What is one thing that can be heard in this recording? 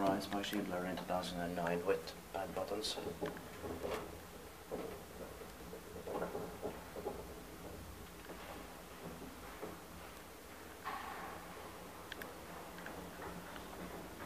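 An old elevator cabin hums softly as it rides along its shaft.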